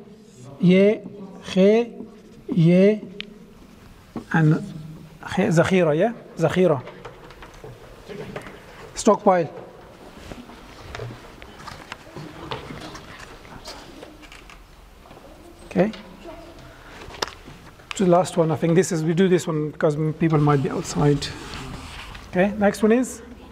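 A man speaks slowly and clearly, as if teaching, close by in a room with some echo.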